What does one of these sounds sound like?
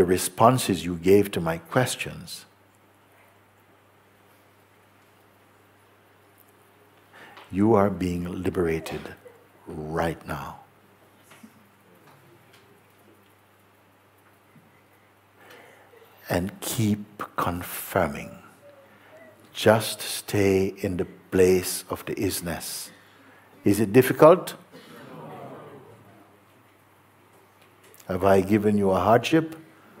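A man speaks calmly and slowly, close to a microphone, with long pauses.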